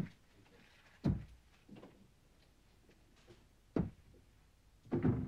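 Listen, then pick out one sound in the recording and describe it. A door thumps shut.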